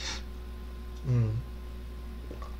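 A young man gulps water from a plastic bottle.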